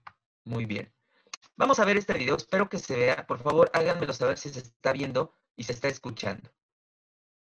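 A young woman speaks calmly into a microphone, as if on an online call.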